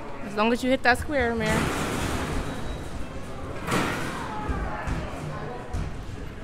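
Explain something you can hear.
A basketball thuds against a backboard and rim.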